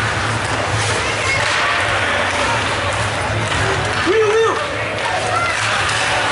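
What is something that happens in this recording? Ice hockey skates scrape and carve across ice in an echoing rink.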